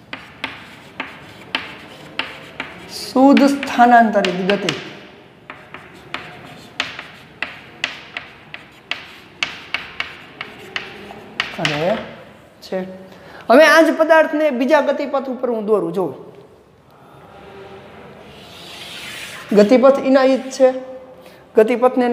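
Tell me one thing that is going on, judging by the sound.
Chalk taps and scrapes on a board in quick strokes.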